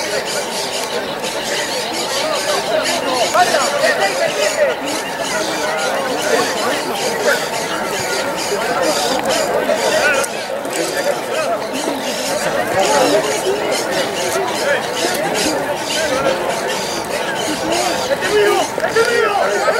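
Young men call and shout to each other outdoors across an open field.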